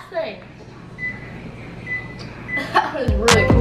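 A microwave beeps as a button is pressed.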